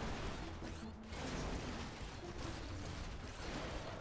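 Debris crashes and scrapes under a giant robot's feet.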